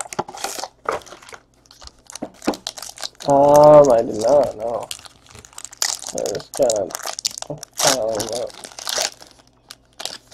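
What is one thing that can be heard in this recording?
A foil pack crinkles and tears open.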